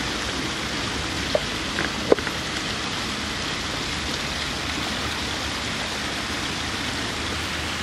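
Paper rustles as a card is lifted and unfolded.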